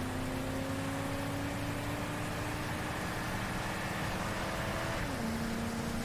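A car engine hums steadily as a vehicle approaches, then drops in pitch as it passes.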